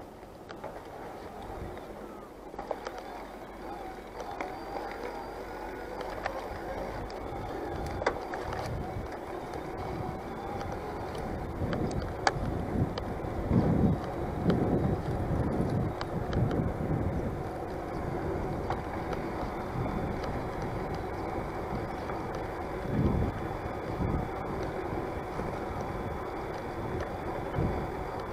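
Wind buffets a microphone outdoors in rumbling gusts.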